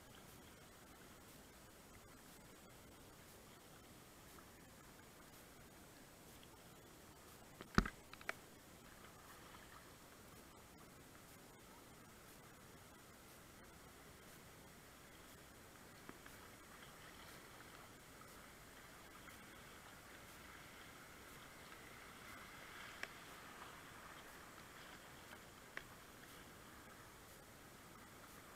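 Water rushes and splashes steadily around a kayak on a river.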